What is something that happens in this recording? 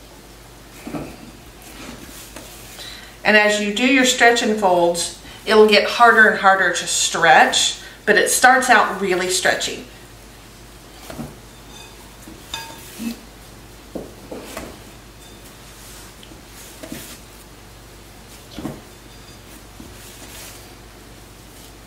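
Hands knead soft dough in a bowl with quiet squishing and thumps.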